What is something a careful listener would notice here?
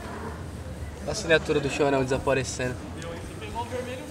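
A man asks a question nearby.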